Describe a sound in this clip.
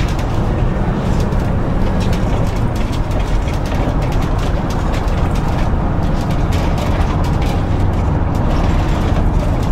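Tyres roll over a road.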